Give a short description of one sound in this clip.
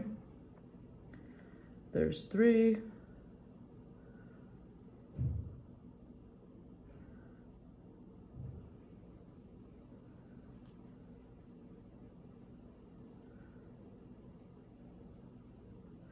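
Tiny beads clink faintly as they are threaded.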